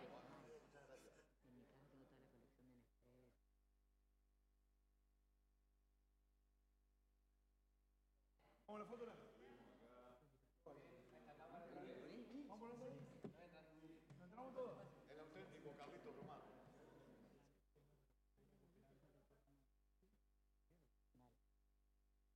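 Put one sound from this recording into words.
A crowd of men and women chatter and call out in a large room.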